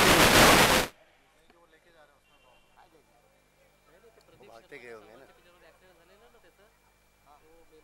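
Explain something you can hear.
A crowd of men murmur and talk faintly at a distance.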